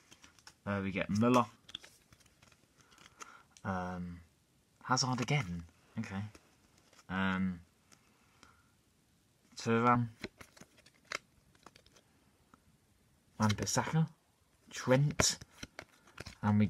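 Trading cards rustle and flick in a boy's hands.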